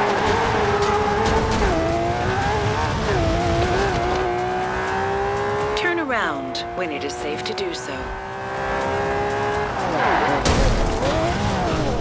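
A sports car engine hums and changes pitch.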